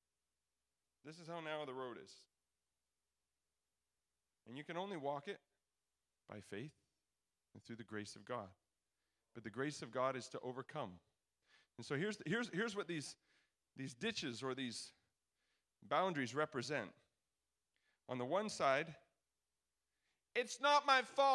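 A young man speaks into a microphone in phrases with pauses, heard over a loudspeaker.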